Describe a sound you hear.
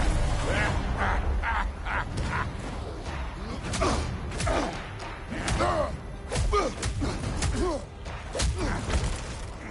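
A man grunts and yells with effort, close by.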